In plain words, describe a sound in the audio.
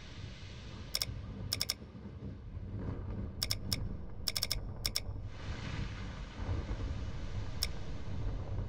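Short menu ticks sound as a map cursor moves.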